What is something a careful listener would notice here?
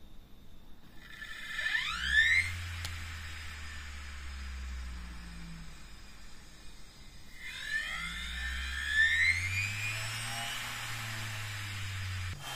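A small electric motor spins up with a rising whine and hums steadily.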